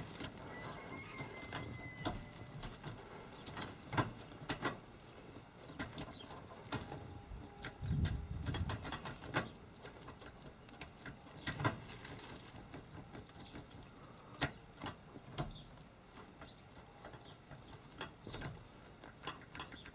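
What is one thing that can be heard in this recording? A small plastic part clicks and rattles as it is handled.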